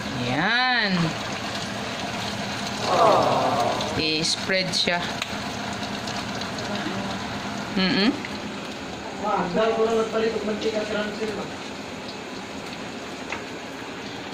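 A metal spatula scrapes and stirs in a frying pan.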